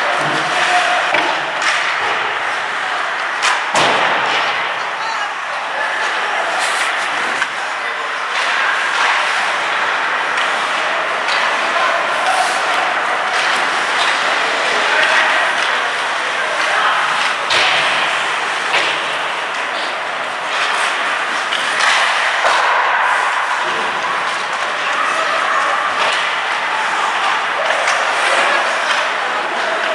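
Young players shout across an echoing rink.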